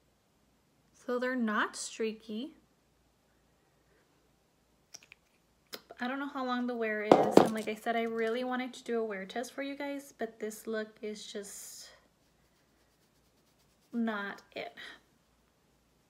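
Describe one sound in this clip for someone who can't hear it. A young woman speaks calmly and close to the microphone, in short bursts.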